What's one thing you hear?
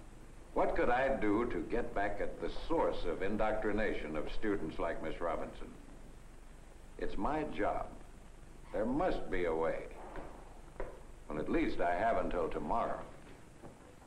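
A middle-aged man speaks calmly, heard through an old, slightly hissy recording.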